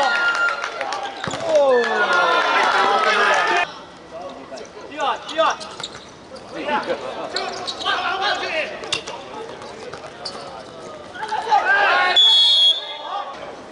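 Young men shout to each other across an open court.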